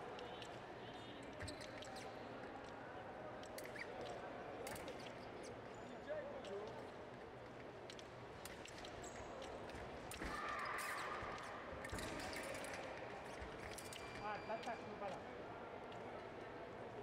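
Footsteps thud and squeak on the floor.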